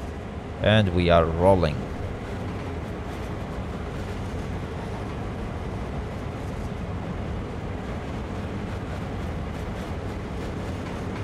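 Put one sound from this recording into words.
A diesel locomotive engine rumbles steadily as the train slowly picks up speed.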